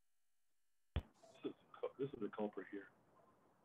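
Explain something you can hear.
Another elderly man speaks calmly over an online call.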